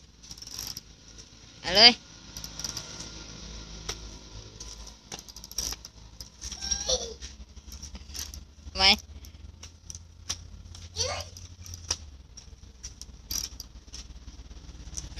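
A small bicycle rattles over concrete.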